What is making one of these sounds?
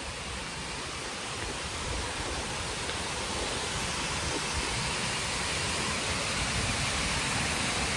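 A young woman talks close by, outdoors.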